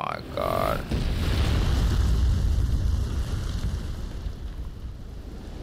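A cloud of dust bursts out with a deep rumbling roar.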